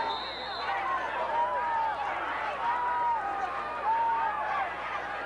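A large crowd of men and women cheers and shouts from stands outdoors.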